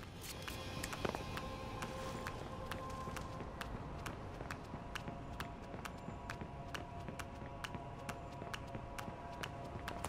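Footsteps run quickly across a hard surface.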